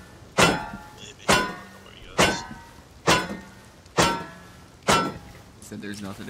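A hatchet strikes metal in sharp, ringing blows, about once a second.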